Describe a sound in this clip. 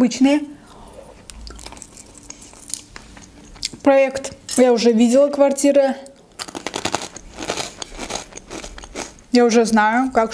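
A young woman chews crunchy snacks close to the microphone.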